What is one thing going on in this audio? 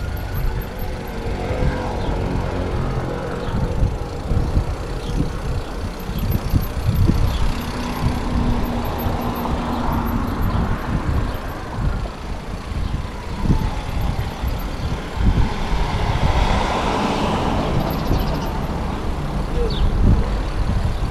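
Wind rushes past close by, low and steady.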